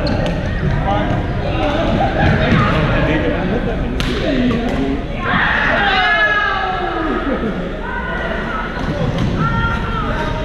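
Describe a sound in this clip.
Badminton rackets hit shuttlecocks with light, sharp pops.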